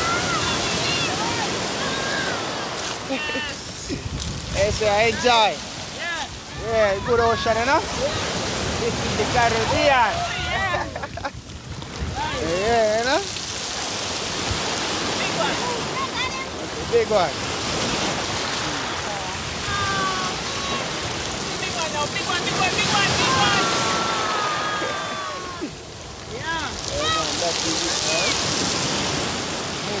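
Women talk and laugh with animation close by.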